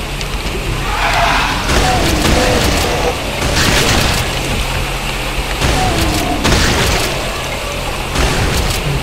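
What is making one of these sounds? A shotgun fires loud blasts with echoing booms.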